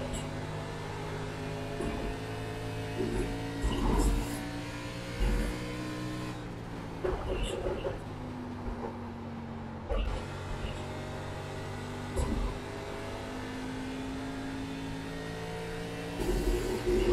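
A race car engine roars steadily, rising and falling in pitch as it shifts.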